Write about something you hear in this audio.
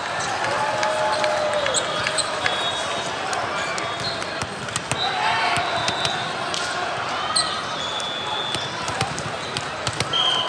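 Volleyballs thump and bounce.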